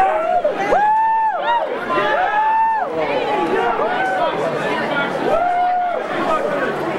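Several people whoop and howl in long drawn-out calls.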